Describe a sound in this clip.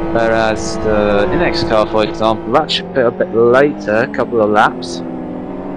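A racing car engine roars loudly, its pitch rising and dropping sharply with rapid gear changes.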